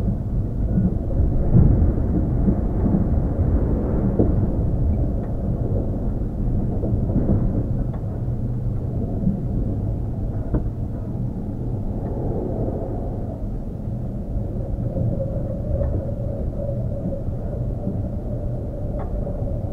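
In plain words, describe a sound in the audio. An electric train rumbles slowly along the tracks.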